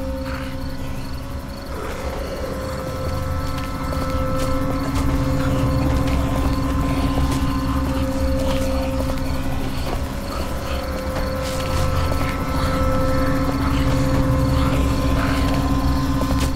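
Footsteps thud on wooden stairs and boards.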